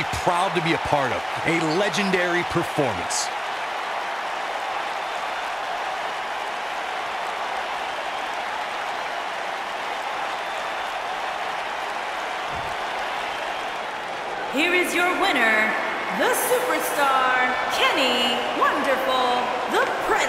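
A large crowd roars and cheers steadily in an echoing arena.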